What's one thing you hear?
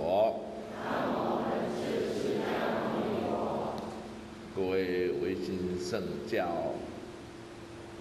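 An elderly man speaks calmly and with expression into a microphone.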